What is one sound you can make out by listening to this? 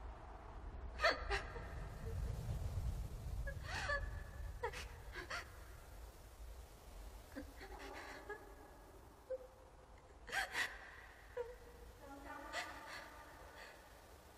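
A young woman sobs softly close by.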